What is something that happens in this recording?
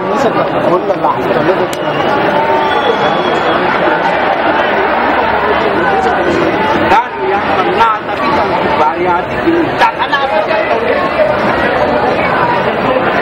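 A large crowd murmurs and cheers outdoors.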